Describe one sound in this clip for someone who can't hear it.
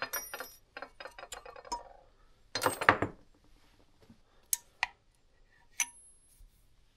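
Metal engine parts clink and tap together.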